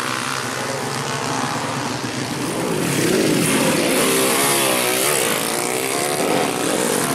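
A motorcycle engine revs loudly, rising and falling in pitch.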